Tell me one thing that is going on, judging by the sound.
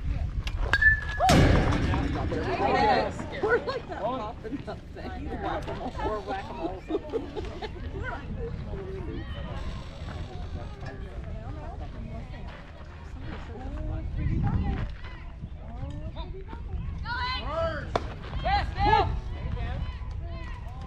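Children and adults talk and shout across an open outdoor field.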